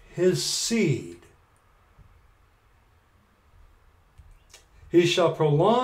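A middle-aged man speaks with animation, close to the microphone, pausing briefly between phrases.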